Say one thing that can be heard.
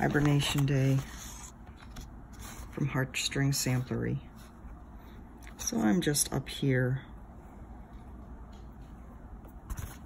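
Paper rustles as pages are handled.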